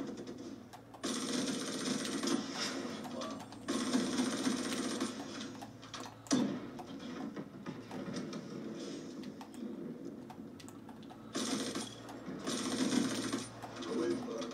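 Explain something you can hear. Video game gunfire rattles in short bursts through a loudspeaker.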